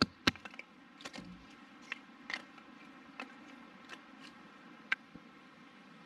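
Wood sticks clatter as they are gathered.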